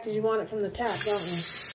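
Water gushes from a tap.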